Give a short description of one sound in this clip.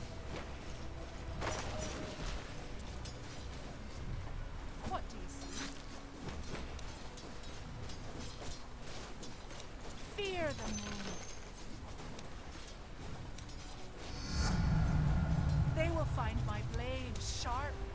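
Game fight sounds whoosh and clash with magical effects.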